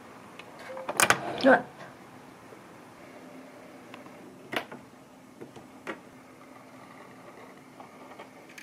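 A sewing machine runs, its needle stitching fabric with a steady whir.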